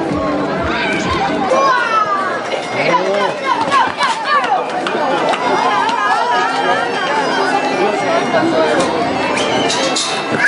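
A crowd of people shouts and cheers loudly outdoors.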